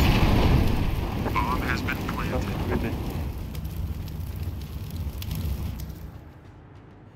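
Fire roars and crackles close by.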